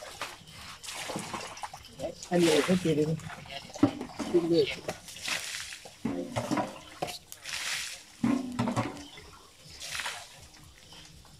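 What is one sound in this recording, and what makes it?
Water splashes onto the ground from a bucket.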